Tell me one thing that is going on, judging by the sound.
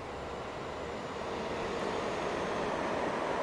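A freight train approaches with a growing rumble.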